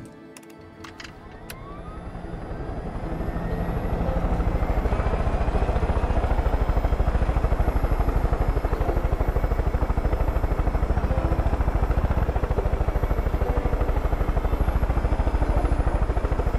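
A helicopter engine starts up and its rotor chops faster and louder until it thumps steadily.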